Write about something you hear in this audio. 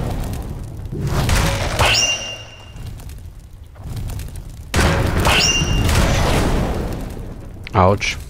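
A fireball bursts with a loud roaring whoosh.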